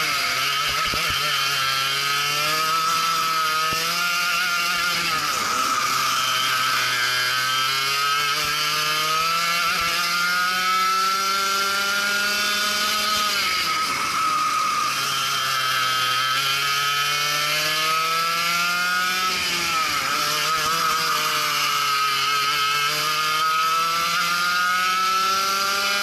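A kart engine buzzes loudly close by, revving up and down as it speeds up and slows for corners.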